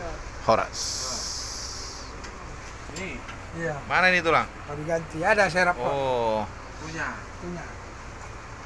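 A man talks nearby with animation.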